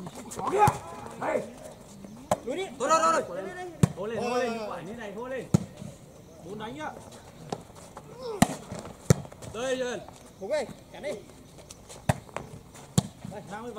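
A ball is struck with sharp thumps.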